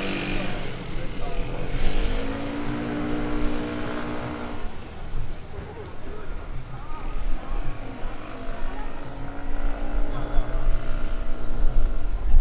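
Cars drive past on the road.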